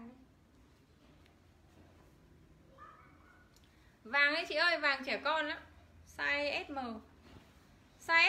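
Clothes rustle as a shirt is shaken out and folded.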